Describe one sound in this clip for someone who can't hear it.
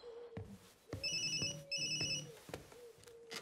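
A mobile phone rings with a chirping electronic tone.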